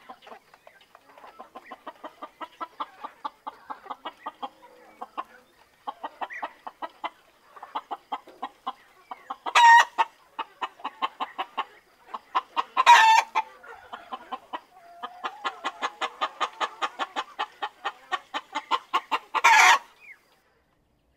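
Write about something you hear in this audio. A chicken clucks close by in quick, steady pulses.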